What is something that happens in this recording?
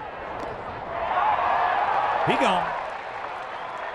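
A crowd cheers loudly in a stadium.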